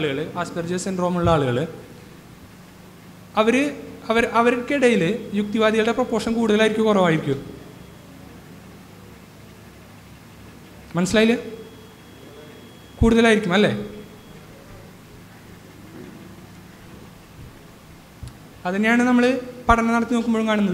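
A young man speaks calmly into a microphone, heard through a loudspeaker, with pauses.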